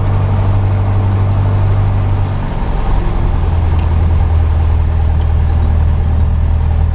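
Wind rushes past the cabin as the plane rolls down a runway.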